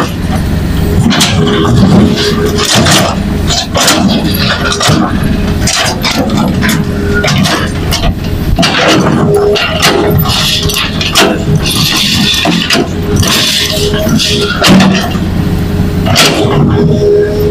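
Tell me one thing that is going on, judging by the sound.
A diesel crawler excavator runs under load.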